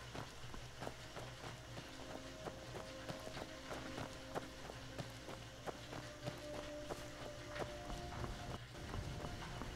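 Footsteps tread steadily on dirt and stone.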